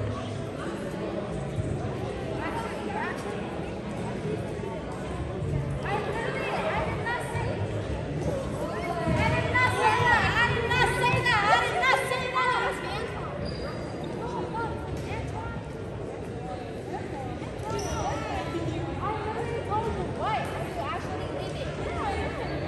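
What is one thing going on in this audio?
Sneakers squeak on a wooden gym floor.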